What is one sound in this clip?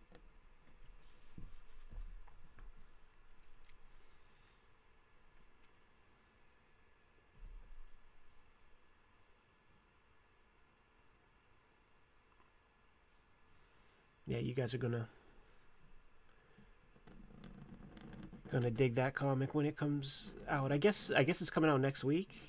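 A pen nib scratches on paper.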